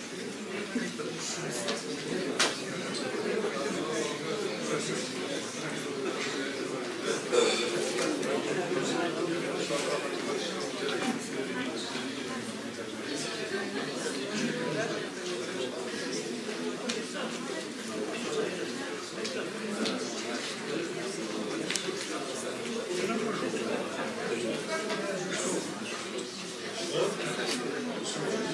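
A middle-aged woman speaks calmly into a microphone in an echoing room.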